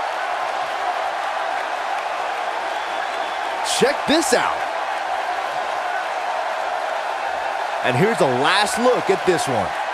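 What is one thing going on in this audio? A large crowd roars and cheers steadily in a big arena.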